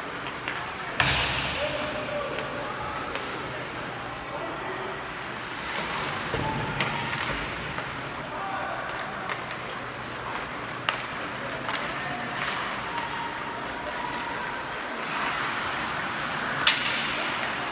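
Sharp knocks of the puck against the boards echo through a large arena.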